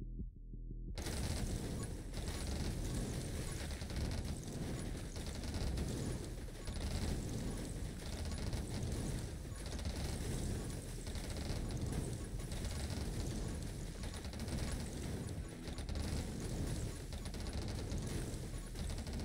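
Video game explosions boom over and over.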